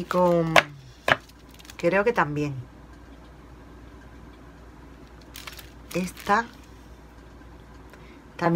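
Sheets of paper rustle and tap as they are handled.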